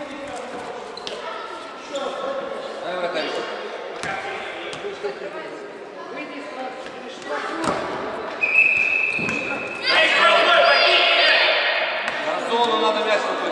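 Young boys shout and call out to each other in an echoing hall.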